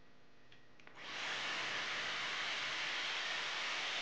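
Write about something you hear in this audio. A hair styler blows air with a steady, loud whoosh.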